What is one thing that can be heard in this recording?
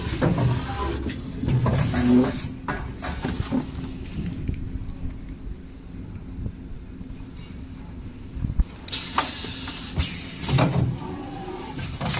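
A packing machine hums and clatters steadily.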